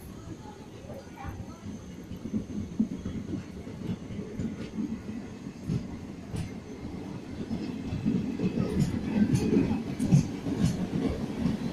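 A passenger train rolls slowly past with a low rumble.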